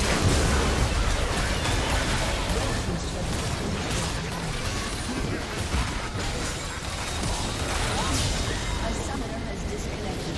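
Game battle effects crackle and blast in quick succession.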